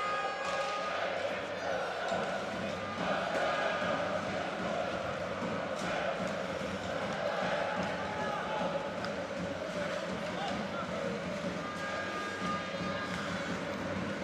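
A crowd cheers and chatters steadily in a large echoing arena.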